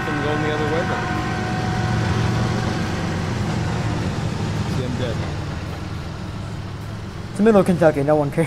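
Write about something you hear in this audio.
A diesel locomotive rumbles past close by and slowly fades.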